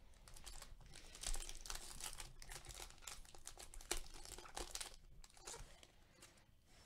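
A foil wrapper crinkles and tears as it is ripped open by hand.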